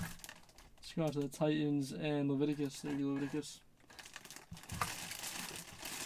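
Plastic wrapping crinkles as it is handled.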